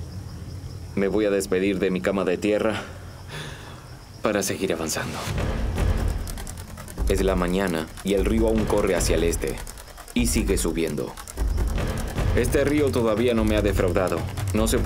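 A middle-aged man talks close to the microphone with animation.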